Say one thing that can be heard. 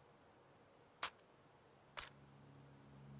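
A rifle's magazine clicks into place.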